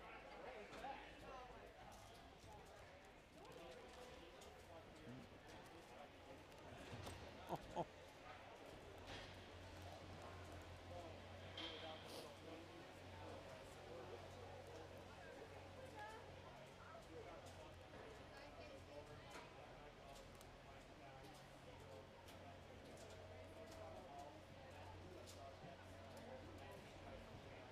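Adults chat in a crowd nearby in a large echoing hall.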